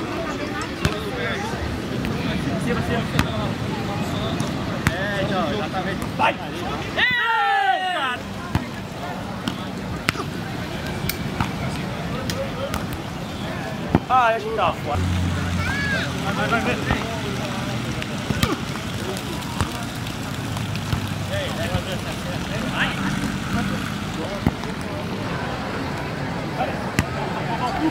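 A ball is kicked again and again with dull thuds.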